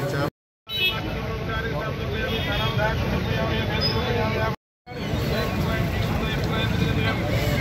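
A crowd of men and women talks and murmurs nearby outdoors.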